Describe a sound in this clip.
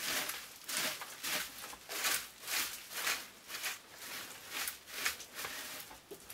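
Rhythmic swishing strokes brush against a log wall.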